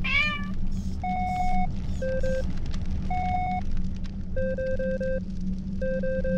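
Short electronic blips chirp rapidly in quick bursts.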